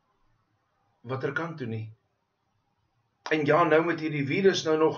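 A middle-aged man speaks calmly into a microphone over an online call.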